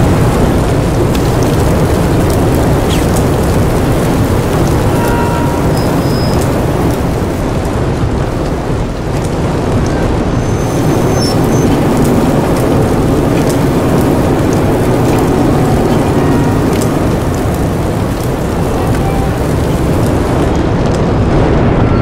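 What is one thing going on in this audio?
A low mechanical hum drones steadily.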